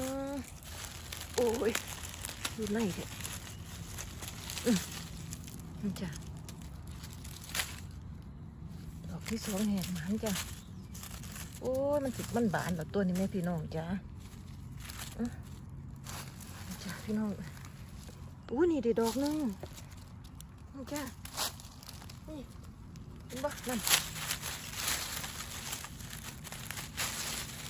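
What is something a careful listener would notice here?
Dry leaves rustle and crackle as a hand brushes through them.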